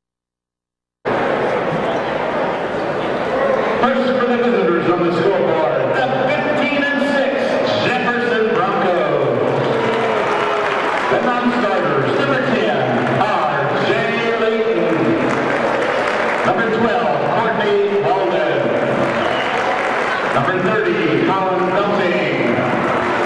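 A crowd cheers and murmurs loudly in a large echoing hall.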